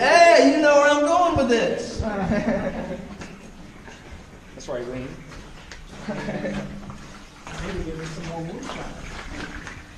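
A man speaks loudly and with animation close by, in an echoing cave.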